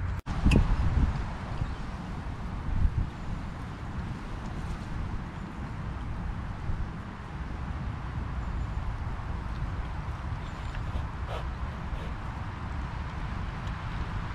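A fork scrapes and clinks against a metal pan.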